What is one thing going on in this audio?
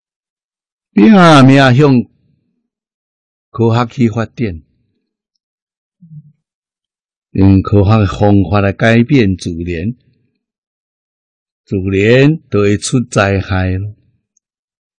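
An elderly man speaks calmly and warmly into a close microphone, in short phrases with pauses.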